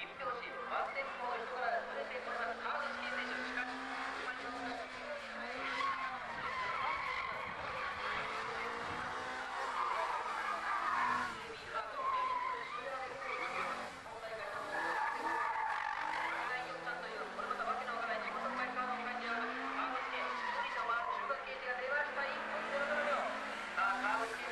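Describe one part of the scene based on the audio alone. A car engine revs hard and changes pitch as the car races around the track.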